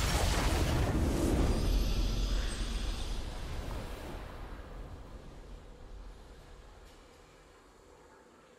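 A triumphant game fanfare rings out and slowly fades away.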